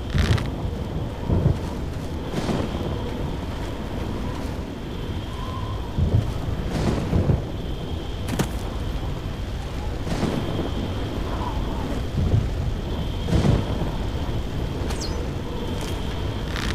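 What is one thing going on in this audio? Molten lava pours down with a low, steady rumble.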